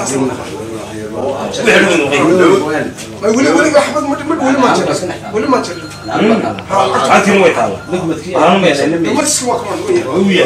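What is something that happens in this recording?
A middle-aged man speaks close by.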